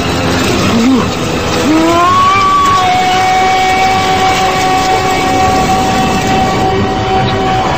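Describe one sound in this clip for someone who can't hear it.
A man screams in rage.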